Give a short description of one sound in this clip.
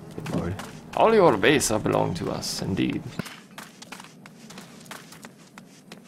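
Quick footsteps patter on dry ground.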